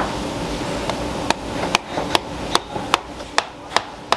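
A blade knocks sharply on a hard fish head.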